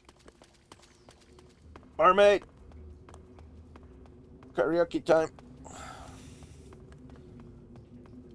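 Footsteps run on a hard floor in an echoing tunnel.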